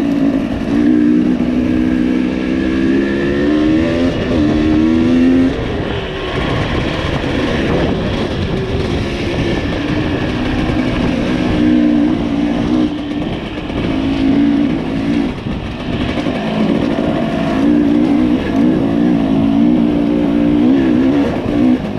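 Tyres rumble over a bumpy dirt trail.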